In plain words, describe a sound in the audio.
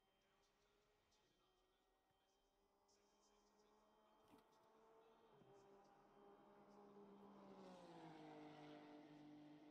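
A racing car engine idles, its hum slowly growing louder and rising.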